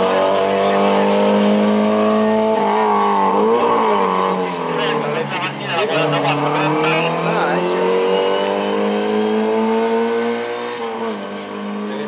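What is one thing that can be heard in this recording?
A rally car engine revs hard, rising and dropping in pitch as it races away.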